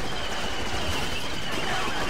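A laser blaster fires a shot.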